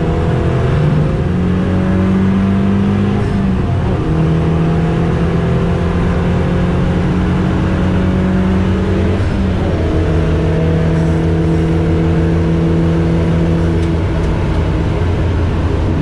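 A race car engine roars loudly, revving up and dropping as gears shift.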